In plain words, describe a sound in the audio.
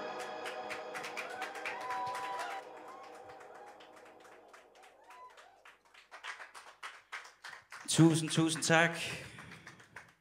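A young man sings into a microphone.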